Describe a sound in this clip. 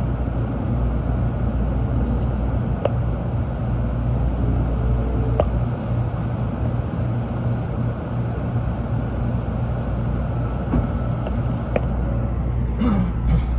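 A train rumbles steadily along the track from inside a carriage.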